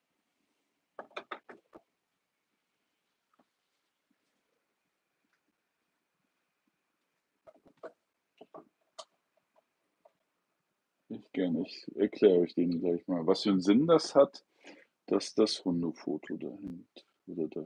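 A middle-aged man speaks calmly and close by, with pauses.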